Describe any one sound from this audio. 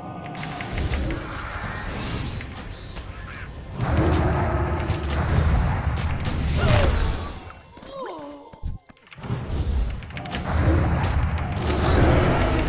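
Magic spells crackle and boom in quick bursts.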